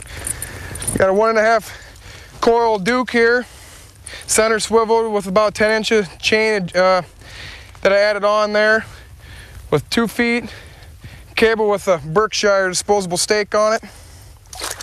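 A man talks calmly, close by outdoors.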